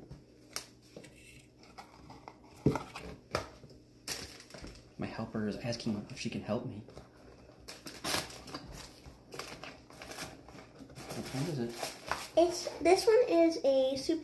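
Small cardboard boxes rustle and click as they are opened.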